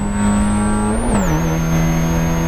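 A Spec Miata race car's four-cylinder engine drops in pitch as the car shifts up a gear.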